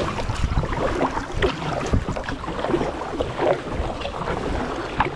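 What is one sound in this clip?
A kayak paddle splashes and dips into calm water.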